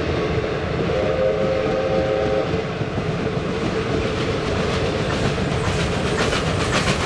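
A steam locomotive whistle blows.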